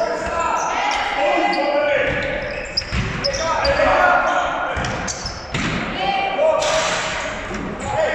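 Players shout to each other across the echoing hall.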